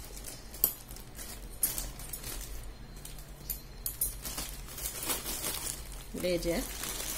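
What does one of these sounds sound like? A plastic mailing bag crinkles and rustles as hands handle it.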